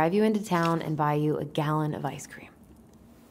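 A young woman speaks calmly and closely.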